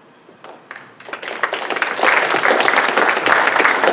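An audience applauds, the clapping swelling and going on.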